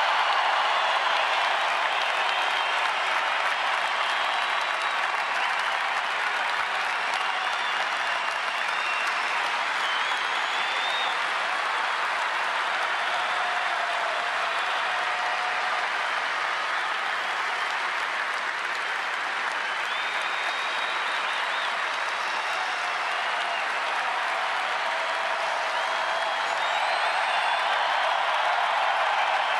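A large stadium crowd cheers and applauds steadily.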